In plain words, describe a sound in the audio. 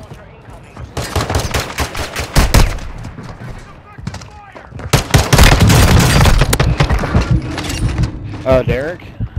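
A gun fires in rapid bursts of sharp shots.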